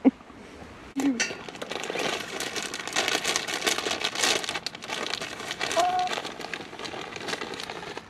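Several hens cluck and squawk close by.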